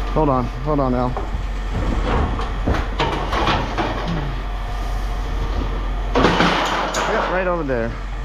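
Aluminum frames clank and rattle as they are handled.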